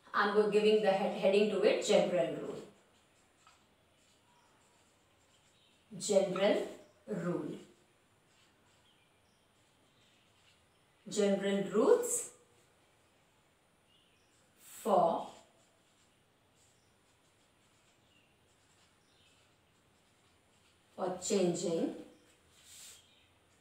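A woman speaks calmly in short bursts nearby.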